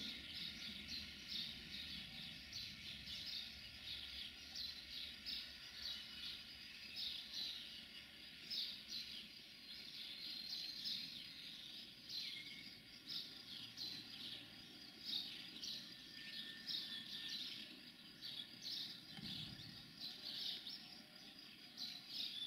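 A diesel railcar engine rumbles low as the railcar rolls slowly along the tracks.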